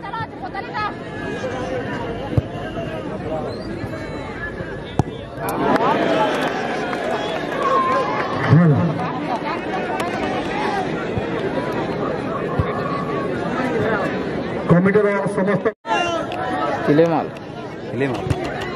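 A large outdoor crowd chatters and shouts.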